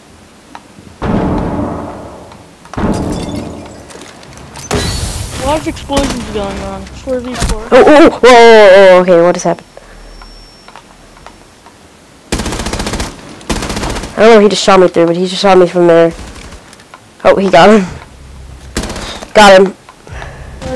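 Gunshots fire in short, loud bursts.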